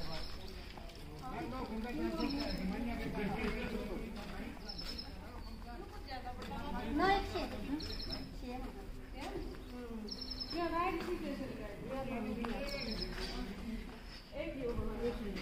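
Women talk to one another nearby.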